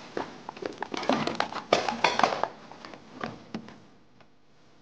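Bodies scuffle and thump against a wooden desk.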